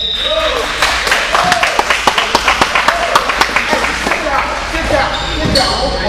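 A basketball bounces rapidly on the floor.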